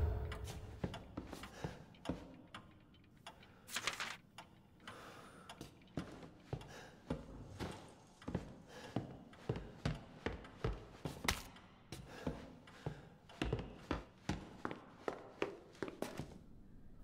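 Footsteps thud steadily across a wooden floor indoors.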